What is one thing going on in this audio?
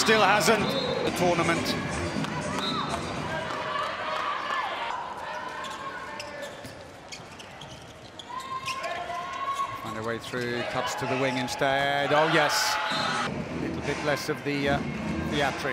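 A crowd cheers and chants in a large echoing arena.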